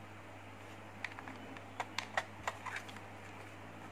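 Plastic clicks and rattles as a remote controller is handled.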